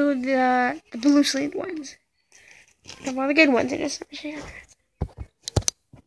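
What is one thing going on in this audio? Plastic card sleeves rustle and click as cards are flipped through by hand.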